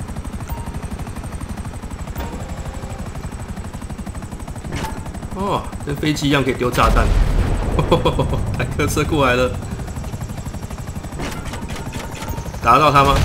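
Helicopter rotor blades thump steadily overhead.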